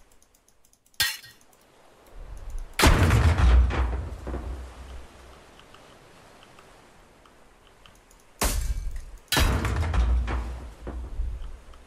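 A heavy hammer smashes wood with loud cracking blows.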